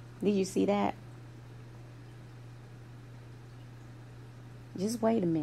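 A woman speaks calmly into a microphone, in short phrases.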